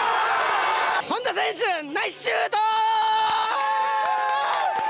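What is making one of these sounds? A young man yells excitedly into a microphone, close by.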